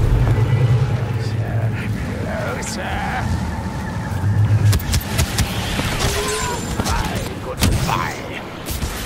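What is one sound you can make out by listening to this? Blaster bolts fire in rapid bursts.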